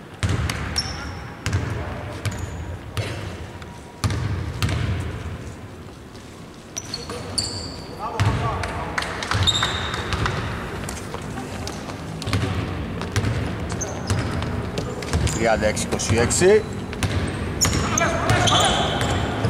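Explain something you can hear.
A basketball bounces on a hardwood court in a large echoing hall.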